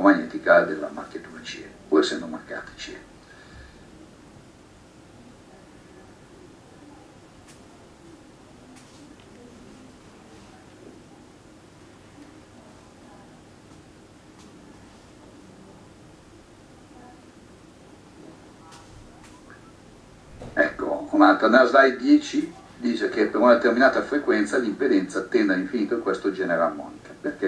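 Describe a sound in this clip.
A man speaks calmly over an online call, heard through a computer speaker.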